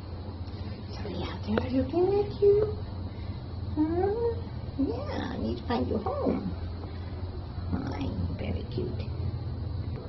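A cat meows several times close by.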